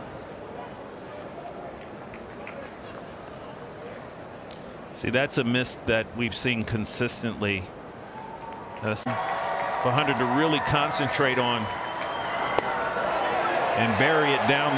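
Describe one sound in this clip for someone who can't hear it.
A ballpark crowd murmurs.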